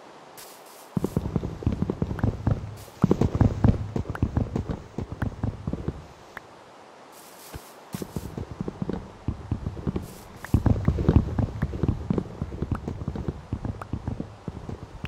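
An axe rapidly chops through leaves and wood with crunching thuds.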